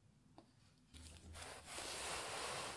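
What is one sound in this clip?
Gloved hands brush softly over a hard head, with a steady rustle.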